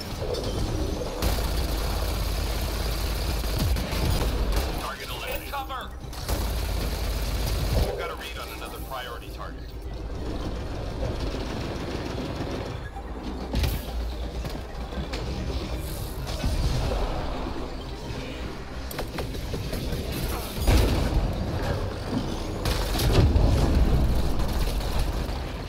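Gunfire and energy blasts crackle in rapid bursts.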